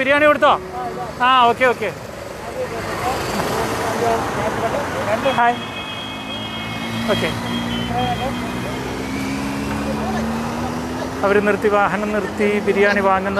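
Traffic rushes past on a road.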